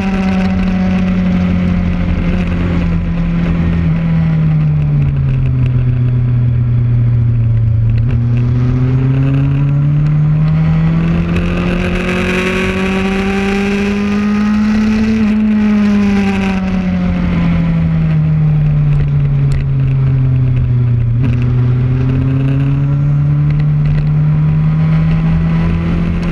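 A sport motorcycle engine revs hard at speed, its pitch rising and falling through the corners.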